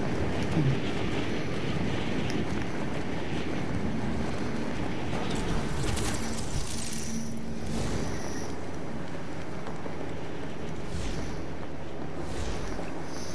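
Wind rushes steadily past during a fast glide through the air.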